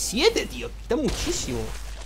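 A ray gun fires with sharp zaps.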